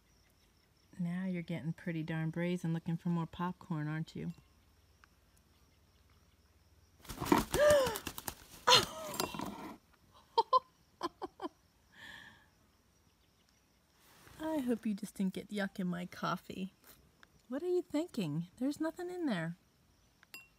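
A hen clucks close by.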